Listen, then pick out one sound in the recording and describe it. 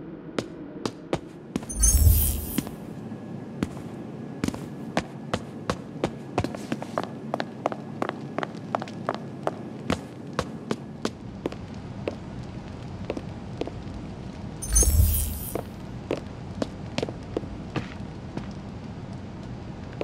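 Footsteps tap steadily across a hard floor.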